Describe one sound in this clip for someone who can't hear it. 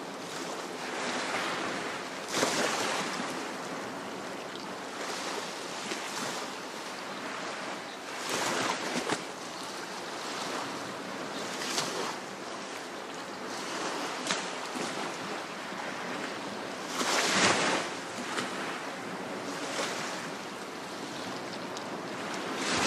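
Small waves wash gently onto a sandy shore, surging now and then.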